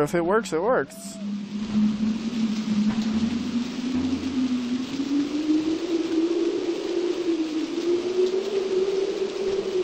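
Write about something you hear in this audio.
Strong wind howls and rises steadily.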